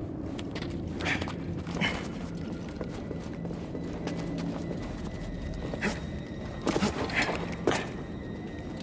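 Footsteps crunch on rocky ground.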